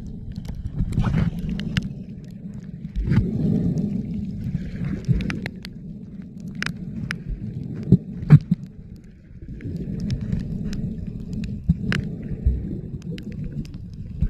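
Water surges and swirls with a muffled, low rumble underwater.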